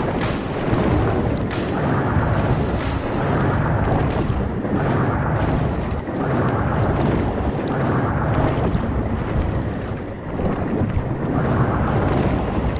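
Water rushes and surges in steady waves as a creature swims fast underwater.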